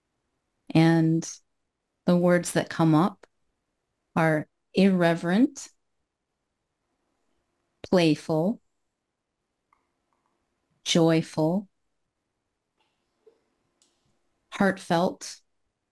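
A young woman speaks with animation over an online call, in short bursts.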